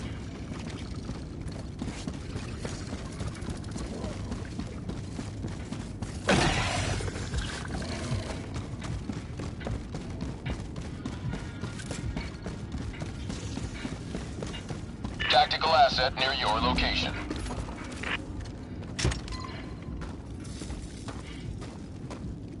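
Heavy boots run over rough ground.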